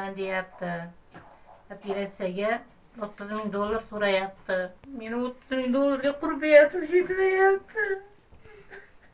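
An elderly woman speaks tearfully close by.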